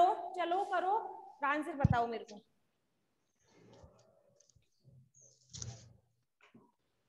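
A young woman speaks calmly into a clip-on microphone.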